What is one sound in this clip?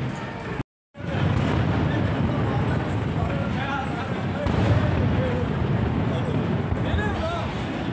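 Fireworks boom and crackle outdoors.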